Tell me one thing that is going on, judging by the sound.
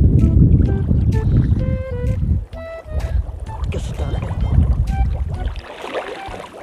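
Wind rumbles across the water.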